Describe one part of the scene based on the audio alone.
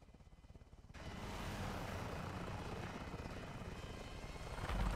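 A helicopter's rotors and engine roar, heard from inside the cabin.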